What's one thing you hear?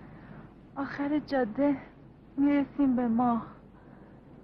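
A woman speaks warmly and softly up close.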